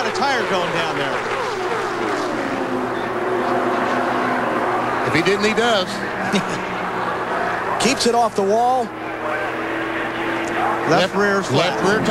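Tyres screech as a race car spins out.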